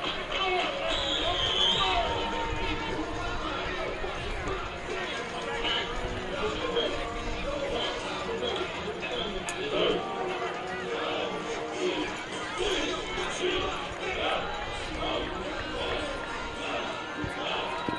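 A crowd murmurs and chatters in the stands outdoors.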